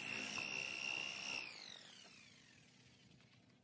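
A handheld electric polisher whines at high speed, then winds down.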